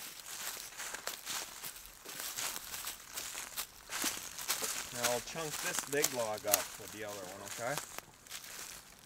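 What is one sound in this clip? Dry leaves crunch and rustle under small footsteps.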